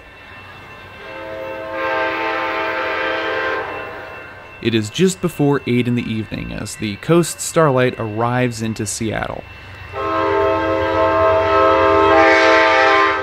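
A train horn blares from a distance in long, steady blasts.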